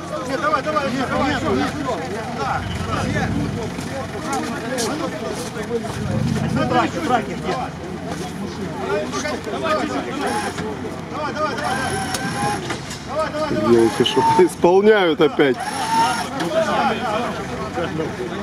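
Several men shout and call out close by, outdoors.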